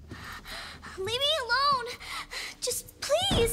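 A man speaks in a high, squeaky cartoon voice.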